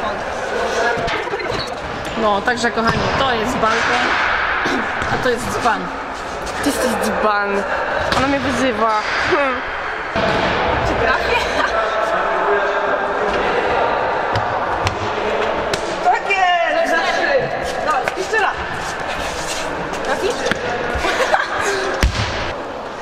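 Young women's voices echo in a large hall.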